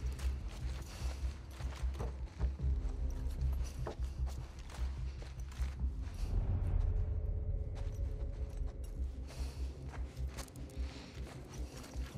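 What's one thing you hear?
Footsteps move quickly across a hard floor.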